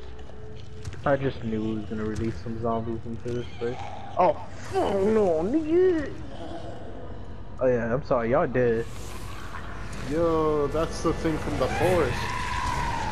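A creature shrieks with wavering, piercing cries.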